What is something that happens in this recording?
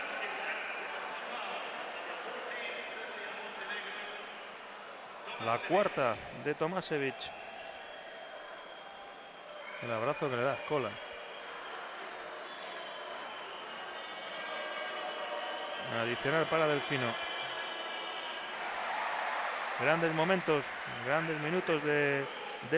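A large crowd cheers and murmurs in a big echoing arena.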